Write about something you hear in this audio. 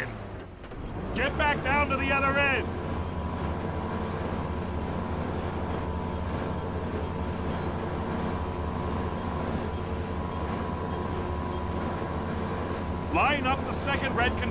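A container crane's electric motor hums as its spreader moves.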